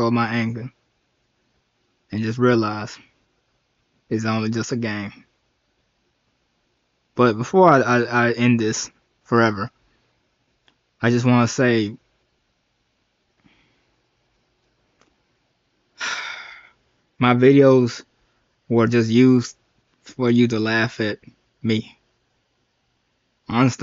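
A young man talks slowly and wearily into a close microphone, in short bursts with pauses.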